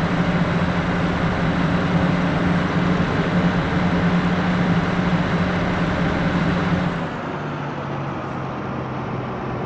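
A heavy engine hums steadily, then drops to a lower hum.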